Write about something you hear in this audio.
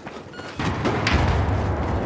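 Gunshots crack from a rifle.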